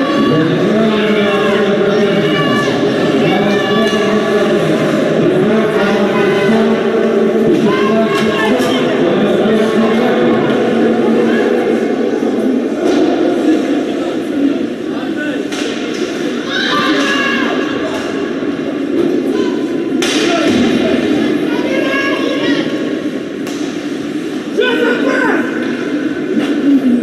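A hockey stick strikes a puck with a sharp crack.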